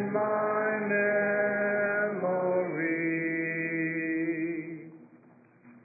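An elderly man sings through a microphone.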